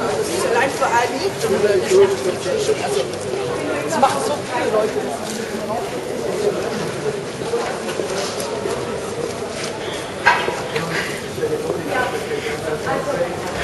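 A group of young men and women sings together outdoors.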